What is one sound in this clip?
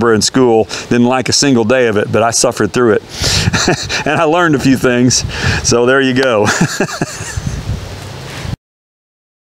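An older man speaks calmly and clearly outdoors.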